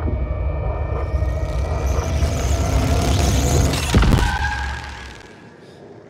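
Television static hisses and grows louder.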